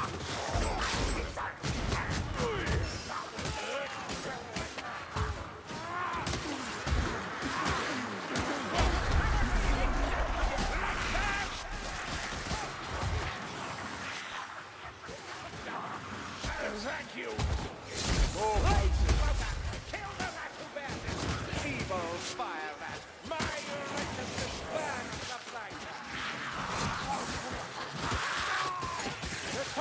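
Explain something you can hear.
Rat-like creatures squeal and screech in a swarm.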